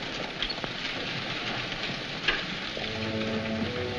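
Horse hooves clop slowly on dirt outdoors.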